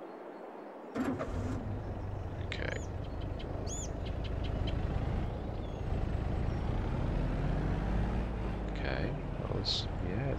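A tractor engine starts and rumbles steadily.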